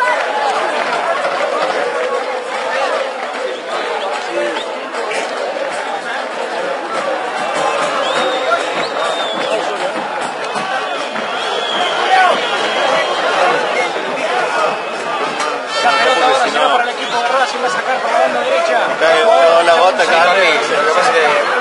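A large crowd of fans chants and sings loudly outdoors.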